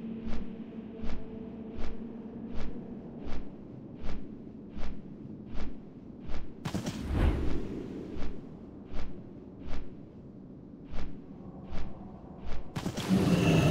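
A large winged creature flaps its wings in steady, regular whooshes.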